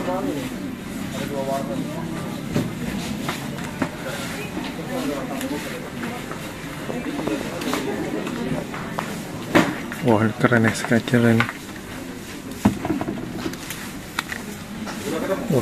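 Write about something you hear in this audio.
A paper tag rustles softly between fingers.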